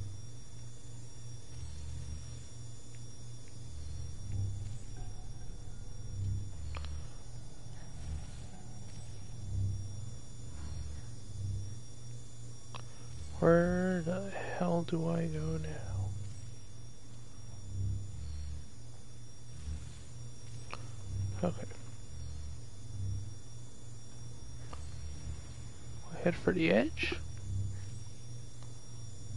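Footsteps thud slowly and steadily on a hard floor.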